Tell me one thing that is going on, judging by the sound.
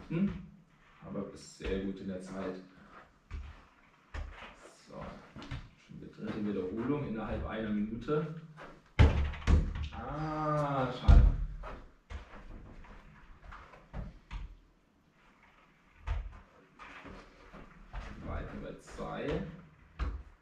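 A football thuds against a wall and the floor.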